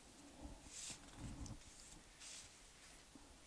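Sheets of paper rustle and slide across a hard surface.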